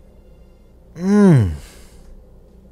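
A young man cries out in a high, wavering voice close to a microphone.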